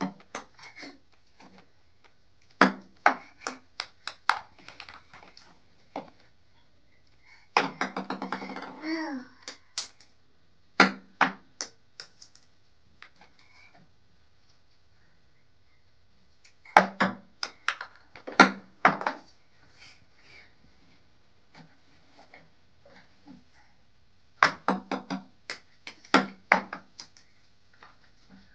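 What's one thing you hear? Small plastic balls clatter and bounce on a hard surface.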